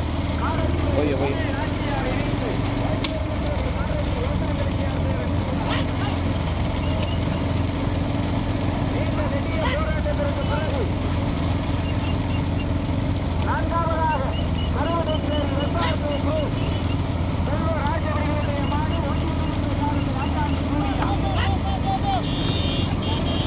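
Men shout loudly at running bulls outdoors.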